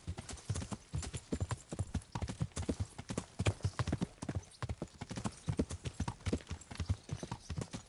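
Horse hooves gallop quickly on a dirt path.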